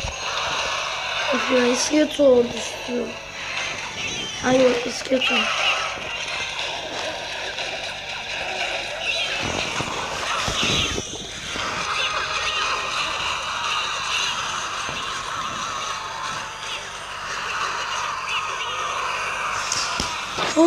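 Cartoonish battle sounds clash and thud as small fighters attack.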